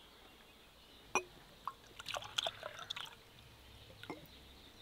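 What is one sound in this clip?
Wine pours and splashes into a glass.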